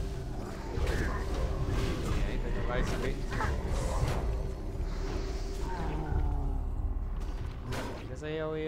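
Spells burst and crackle in a game battle.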